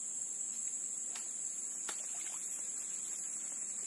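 A fishing reel clicks softly as line is wound in.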